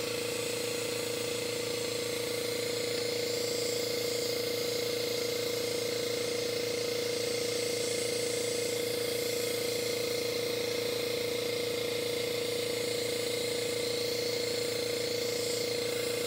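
An airbrush hisses softly as it sprays paint.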